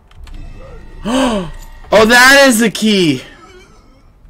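A young man exclaims loudly and with animation into a microphone.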